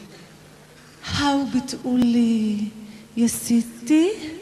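A singer sings through a microphone.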